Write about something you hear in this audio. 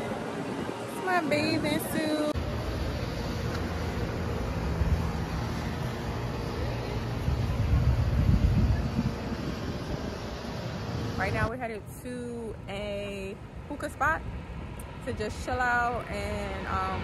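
A young woman talks to a close microphone.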